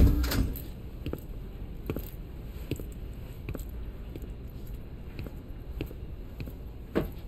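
Footsteps tap slowly on a hard floor indoors.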